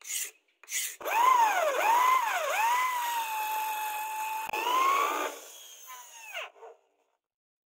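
A drill whines as it bores into wood, its pitch dipping and rising under load.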